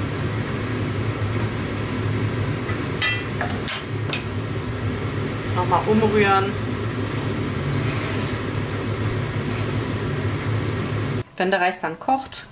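A wooden spoon stirs and scrapes against a pot.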